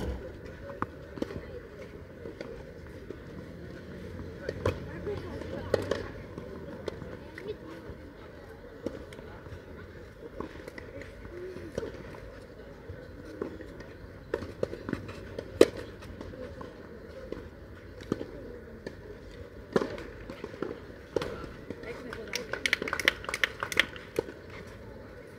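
Tennis balls are struck with rackets in a rally, echoing outdoors.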